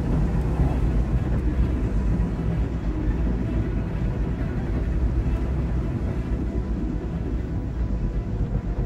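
A strong wind howls steadily through a snowstorm.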